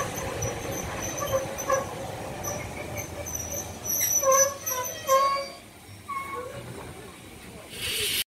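A steam locomotive chuffs as it pulls away.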